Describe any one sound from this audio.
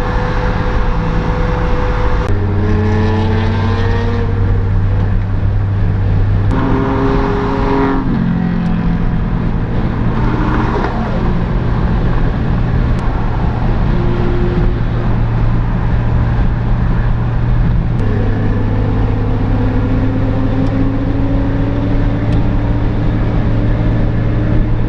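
Tyres roar on a road at speed.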